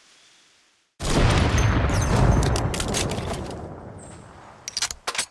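A sniper rifle shot booms in a video game, with a long rumbling tail.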